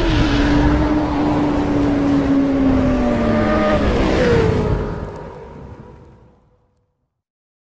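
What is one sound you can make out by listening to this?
A motorcycle engine roars loudly and then fades away.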